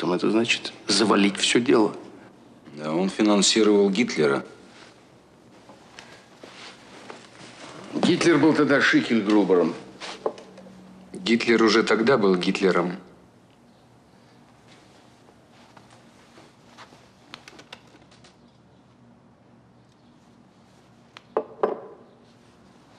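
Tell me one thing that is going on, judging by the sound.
A second middle-aged man answers in a low, earnest voice.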